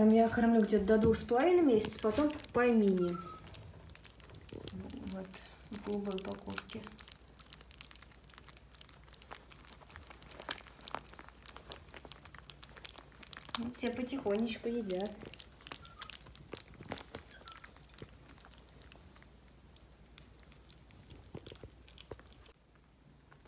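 Puppies lap and chew food noisily, close by.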